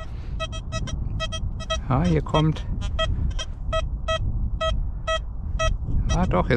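A metal detector beeps in short repeated high tones.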